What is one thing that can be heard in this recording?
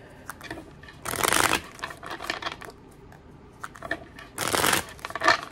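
Playing cards riffle and flutter as they are shuffled close by.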